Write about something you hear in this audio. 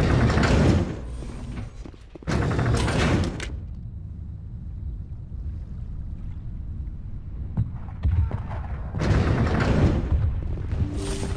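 An elevator hums with a low, steady rumble.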